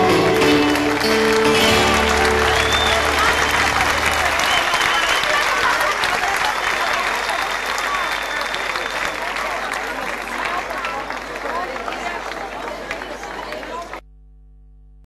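A large crowd applauds and cheers outdoors, slowly fading.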